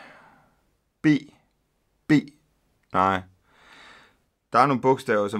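A middle-aged man speaks close to a microphone in short, halting bursts.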